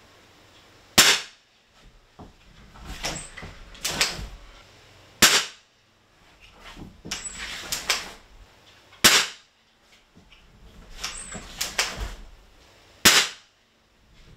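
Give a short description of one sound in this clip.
An air rifle fires sharp single shots every few seconds.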